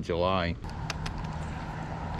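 A fishing reel clicks as its handle is turned.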